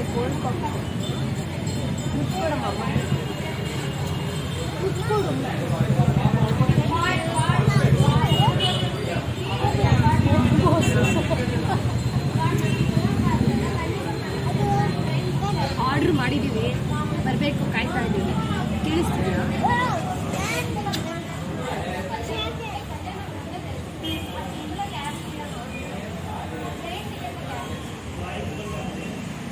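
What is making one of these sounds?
Many people chatter in the background of a busy room.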